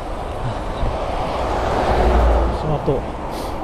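A truck rumbles past in the other direction.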